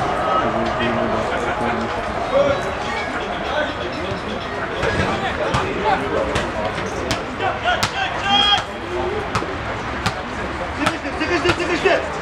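Football players shout to each other across an open pitch.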